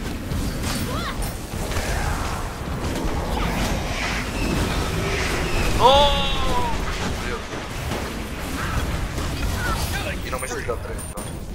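Fiery spell effects whoosh and crackle in a game battle.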